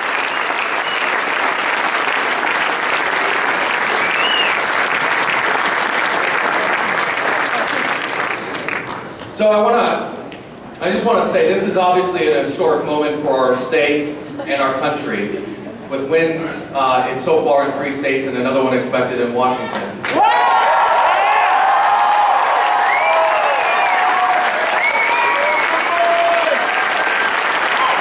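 A large crowd cheers and whistles loudly in an echoing hall.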